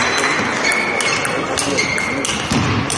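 A table tennis ball clicks back and forth on bats and table.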